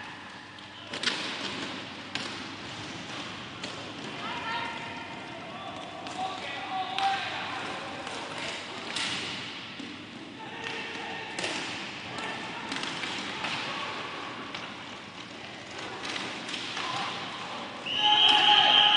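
Hockey sticks clack against a ball and each other in sharp knocks.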